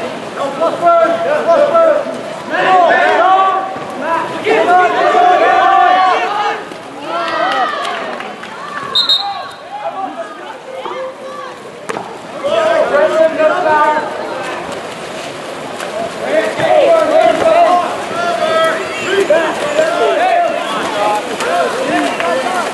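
Players splash water in a pool.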